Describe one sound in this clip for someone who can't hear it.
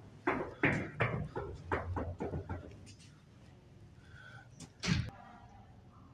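A man knocks loudly on a glass door.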